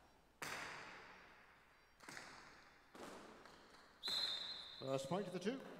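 A hard ball smacks loudly against a wall, ringing through a large echoing hall.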